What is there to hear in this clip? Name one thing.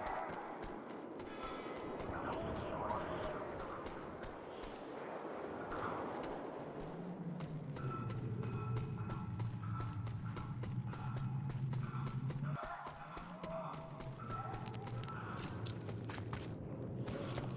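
Footsteps crunch quickly over rough rocky ground.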